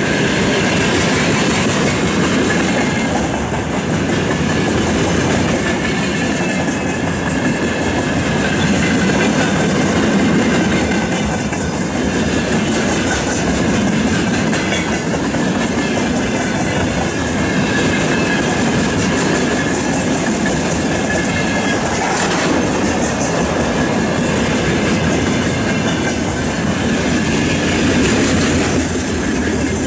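Metal wheels squeal faintly against the rails.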